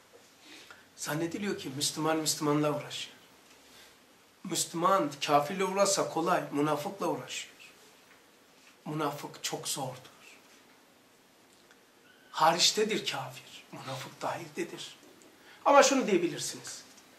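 A middle-aged man speaks calmly and clearly, close to a microphone, in short phrases with pauses.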